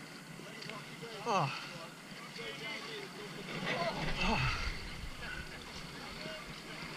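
Feet slosh and splash through mud and water.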